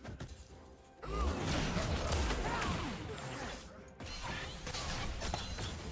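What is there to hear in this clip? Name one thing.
Game fight sounds of clashing blows and magic blasts ring out.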